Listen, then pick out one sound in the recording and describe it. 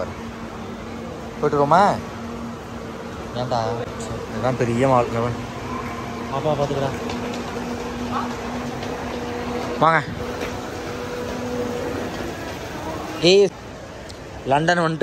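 A crowd of shoppers murmurs in a large echoing hall.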